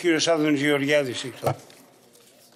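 An elderly man speaks loudly with emphasis through a microphone in a large hall.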